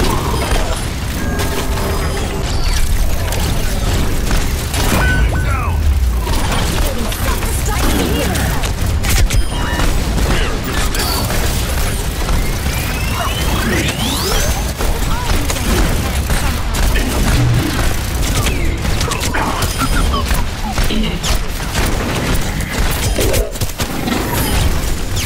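Pistols fire in rapid bursts.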